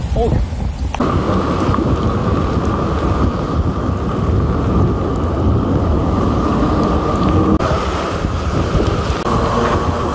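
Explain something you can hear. Bicycle tyres hiss steadily on a wet road.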